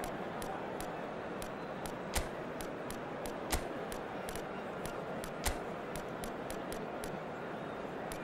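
Game menu clicks tick at a quick, steady pace.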